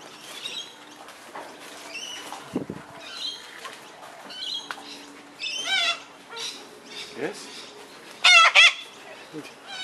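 A cockatoo screeches loudly close by.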